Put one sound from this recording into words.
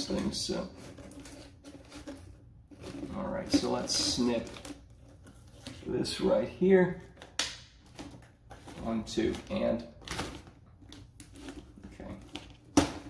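A foil duct crinkles and rustles as it is handled.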